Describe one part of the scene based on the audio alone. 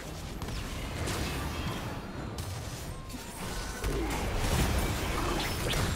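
Magic spells whoosh and crackle in a video game.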